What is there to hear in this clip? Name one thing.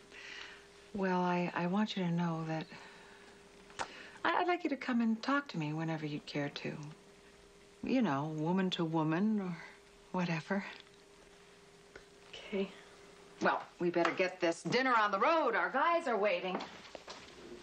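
A middle-aged woman speaks calmly and warmly nearby.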